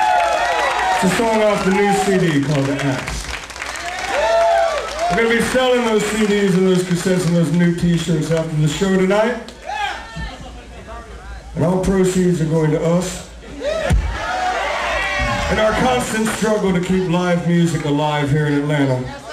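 A man sings into a microphone, heard through loudspeakers in a hall.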